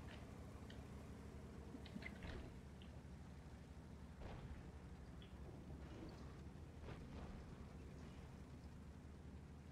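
Heavy tank engines rumble steadily.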